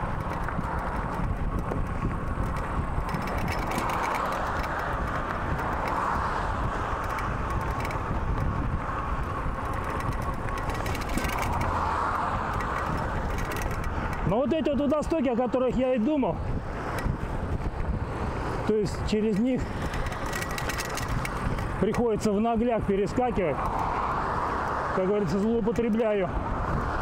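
Wind rumbles steadily past a moving bicycle.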